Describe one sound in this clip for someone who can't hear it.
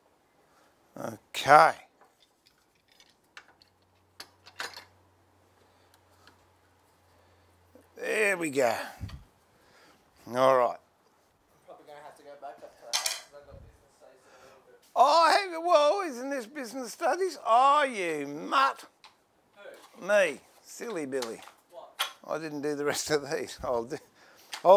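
A man talks calmly, close by, pausing now and then.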